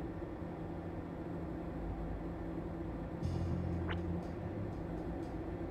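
A low electronic hum drones steadily in the background.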